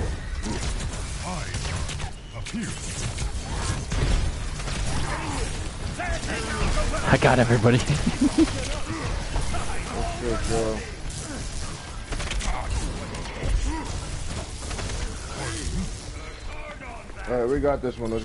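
An electric weapon crackles and zaps in bursts.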